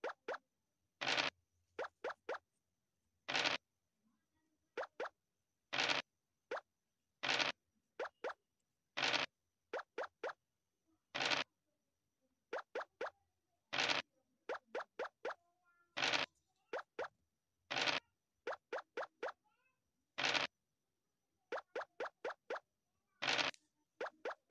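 Dice rattle as they are rolled, again and again.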